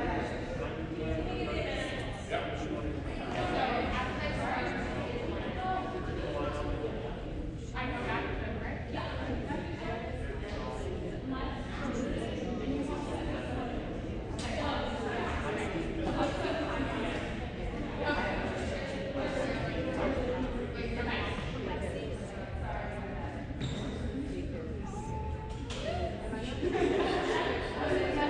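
Several women talk and call out in a large echoing hall.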